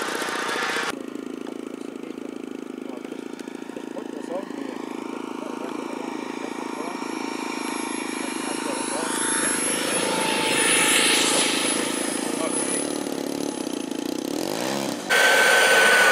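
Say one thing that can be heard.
A model jet's engine roars steadily as it passes overhead and touches down.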